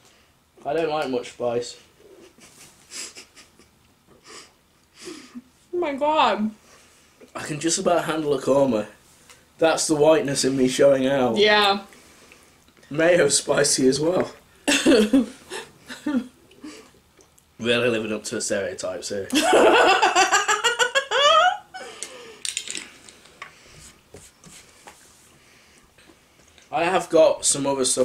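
A woman talks and laughs close by.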